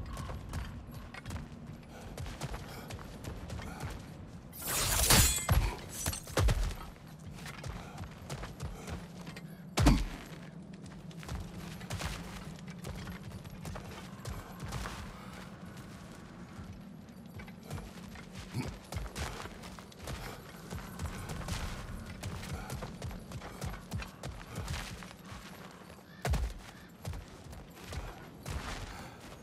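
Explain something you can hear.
Heavy footsteps crunch on gravel and stone.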